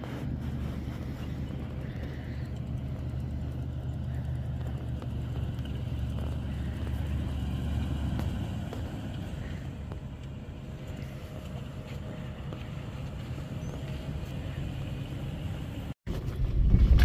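An SUV engine idles with a low, steady rumble outdoors.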